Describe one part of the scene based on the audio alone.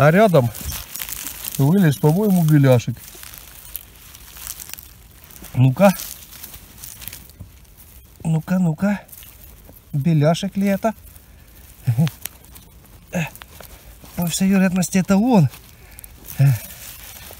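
Dry pine needles rustle and crackle under a hand.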